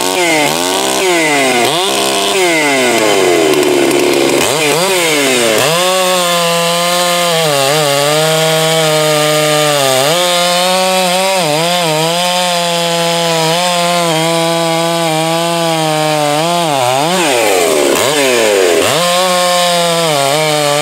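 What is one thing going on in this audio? A chainsaw engine revs up and down loudly, then cuts steadily through a log outdoors.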